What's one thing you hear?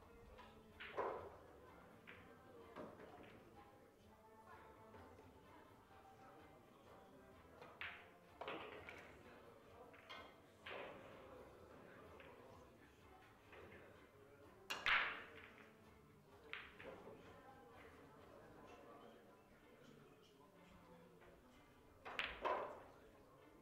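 Billiard balls click sharply against each other, echoing in a room.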